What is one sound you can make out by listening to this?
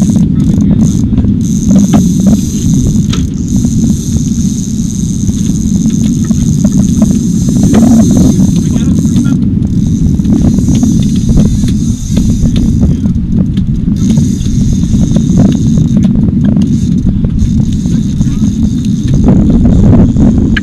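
A boat engine rumbles steadily outdoors.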